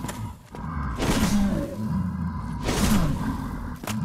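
A sword strikes armour with sharp metallic clangs.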